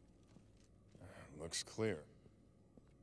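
A man makes a short, calm remark.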